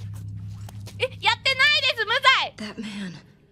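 A young woman speaks with animation into a close microphone, her voice high and playful.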